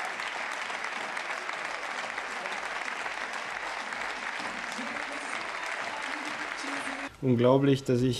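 A crowd murmurs and chatters in a large hall.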